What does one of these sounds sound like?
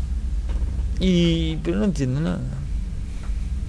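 A woman answers briefly in a low voice.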